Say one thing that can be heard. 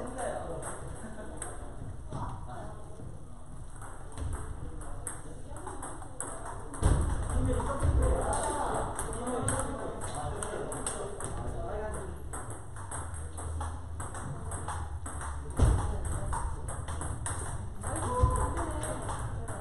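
Table tennis balls click against paddles and tables in a large echoing hall.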